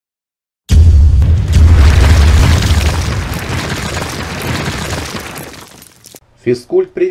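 A heavy wall cracks and crumbles with a deep rumbling crash that slowly fades.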